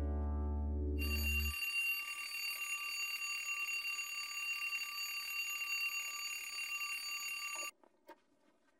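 An alarm clock rings with a steady high tone.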